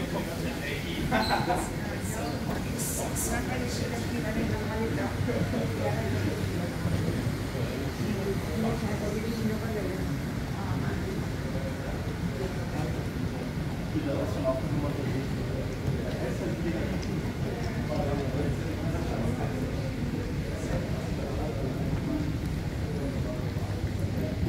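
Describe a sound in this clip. Suitcase wheels roll over a hard floor.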